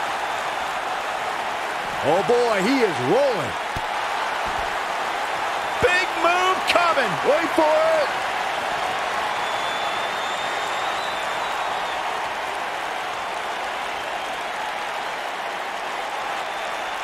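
A crowd roars steadily in a large arena.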